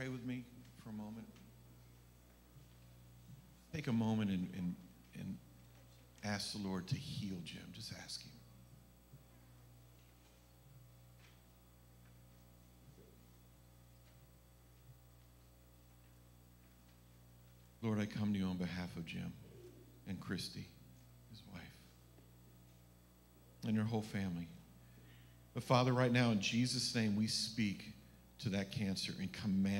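A man speaks through a microphone in a large echoing hall, with long pauses.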